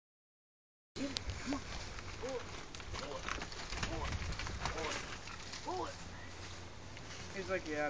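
A dog growls and whines as it tugs on a rope.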